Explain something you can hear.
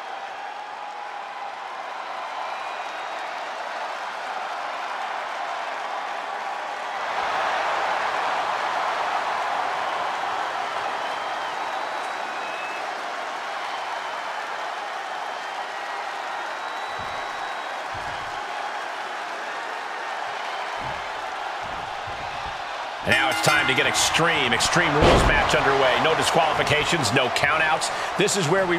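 A large crowd cheers steadily in a big echoing arena, swelling louder for a while.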